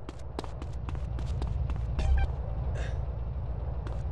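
Footsteps slap quickly on hard ground.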